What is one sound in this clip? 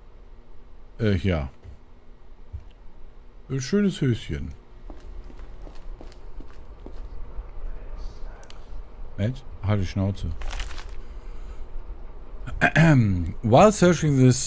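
A man speaks in short bursts into a close microphone, with animation.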